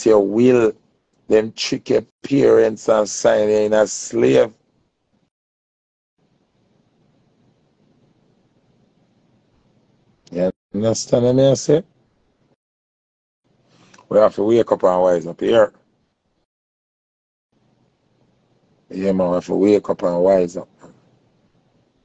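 A man speaks casually and close by, in short bursts with pauses.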